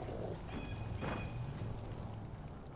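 A gun fires shots.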